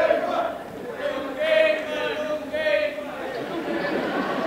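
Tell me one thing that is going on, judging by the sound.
A man sings out alone in a reverberant hall.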